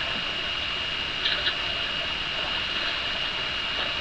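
Water splashes as a basin is dipped and rinsed.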